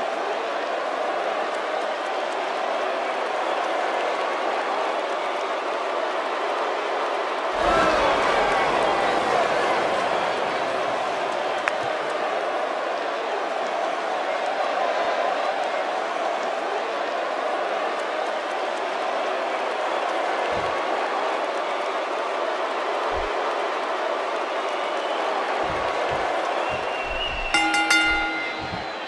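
A large arena crowd cheers steadily throughout.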